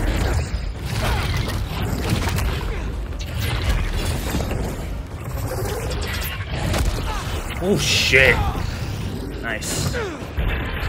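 A huge creature snarls and roars.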